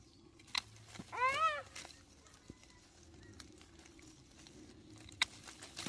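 Leaves rustle as a hand pulls at a branch.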